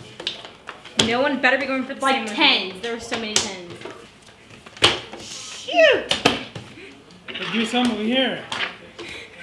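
Playing cards slap onto a table.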